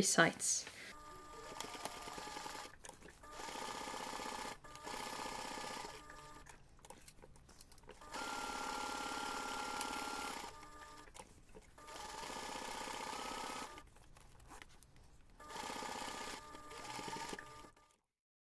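A sewing machine runs in short bursts, whirring and stitching steadily.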